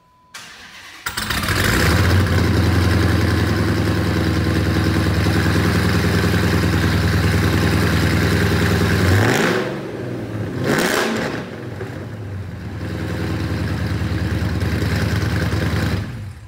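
A car engine starts with a loud roar and rumbles at a deep idle.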